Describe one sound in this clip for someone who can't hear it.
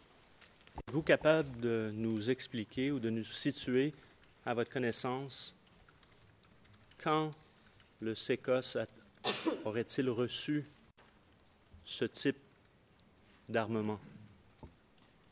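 A middle-aged man speaks through a microphone in measured bursts, with pauses.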